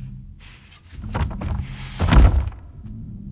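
A knife stabs into flesh with a wet thud.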